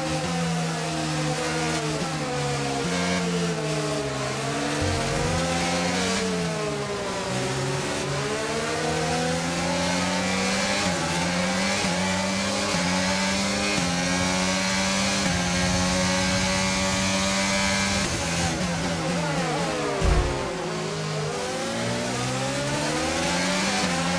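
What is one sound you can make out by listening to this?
Other racing cars' engines whine close by.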